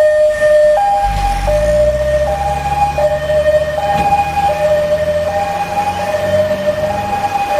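A heavy truck engine rumbles as it passes.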